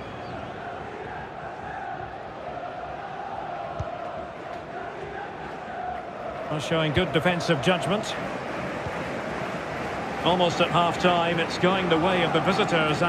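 A large stadium crowd murmurs and hums steadily.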